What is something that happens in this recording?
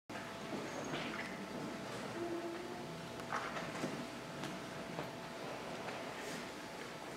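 An audience murmurs softly in a large echoing hall.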